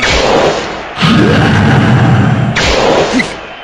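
A blast of sound whooshes and rumbles, then fades.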